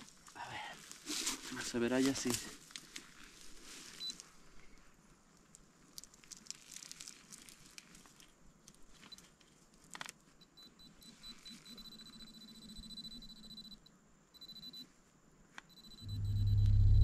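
A small hand tool scrapes and digs into dry soil.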